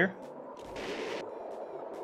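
A jet engine roars briefly.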